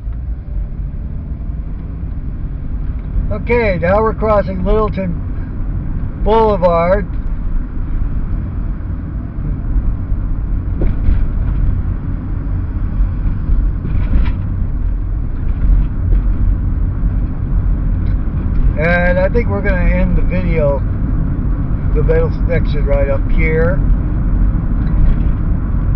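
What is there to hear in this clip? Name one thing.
A car rumbles steadily along a road, heard from inside.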